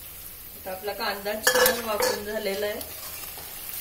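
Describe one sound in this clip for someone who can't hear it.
A spatula scrapes and stirs inside a metal pan.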